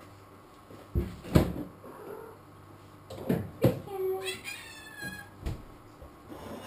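A refrigerator door opens and shuts.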